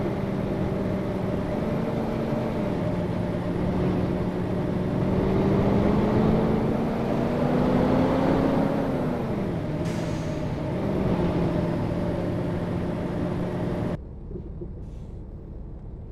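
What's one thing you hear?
A bus engine drones steadily, rising and falling in pitch as it speeds up and slows down.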